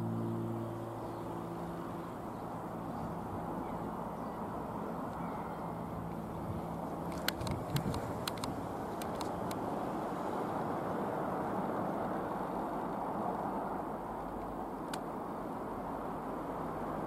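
A single piston-engine propeller light aircraft drones overhead.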